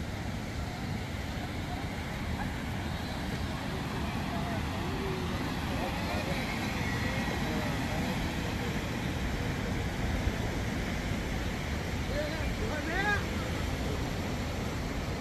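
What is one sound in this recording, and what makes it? A crowd of people chatters in the distance, outdoors.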